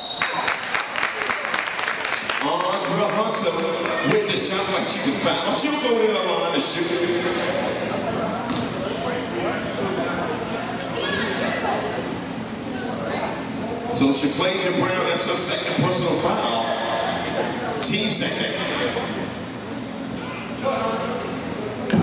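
Shoes squeak on a hard court in a large echoing gym.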